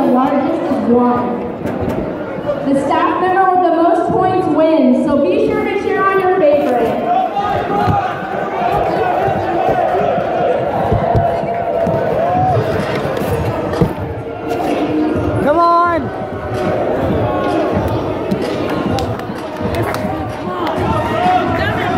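A large crowd chatters in an echoing hall.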